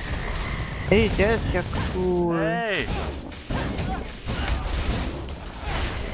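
A crackling lightning spell bursts in a video game.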